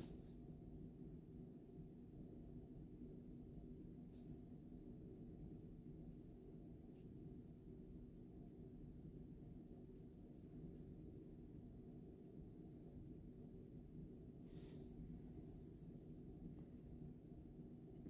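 A knife cuts through soft dough and taps a countertop.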